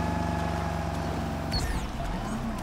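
A boat engine drones, then cuts off.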